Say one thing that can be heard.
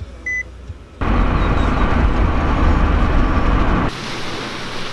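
A car engine roars while driving.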